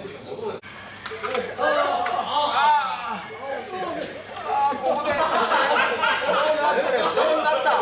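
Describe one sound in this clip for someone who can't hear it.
Small electric model cars whir as they race across a track.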